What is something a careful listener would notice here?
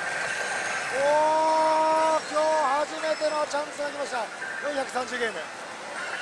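A slot machine plays electronic tones and jingles.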